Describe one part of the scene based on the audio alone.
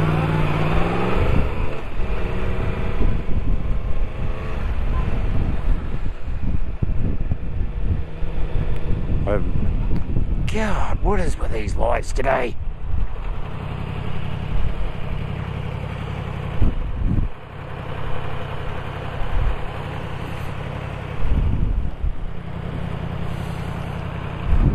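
A motorcycle engine hums steadily and revs up as it rides along.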